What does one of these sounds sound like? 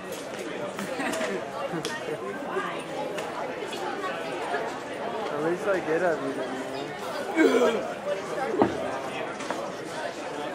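Many young people chatter and talk at once in a large echoing hall.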